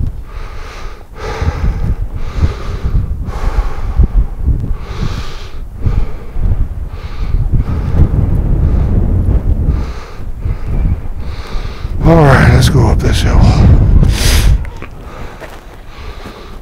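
Wind buffets and rumbles outdoors.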